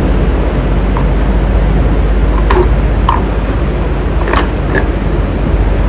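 A fan's switch clicks as a hand turns it.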